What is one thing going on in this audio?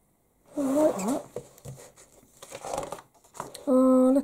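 A page of a book turns with a soft paper rustle.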